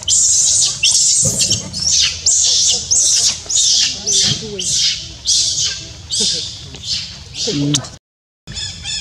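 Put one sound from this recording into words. A baby monkey shrieks loudly and over and over.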